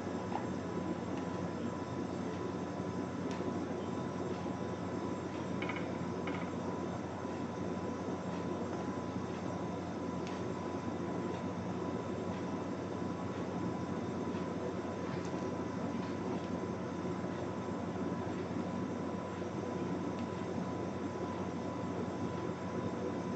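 Yarn and small tools click and rustle in a woman's hands.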